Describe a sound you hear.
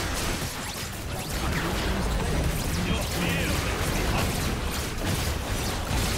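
Magic spells crackle, whoosh and burst in a busy fight.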